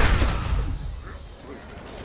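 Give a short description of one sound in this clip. A magical blast bursts with a rushing swirl.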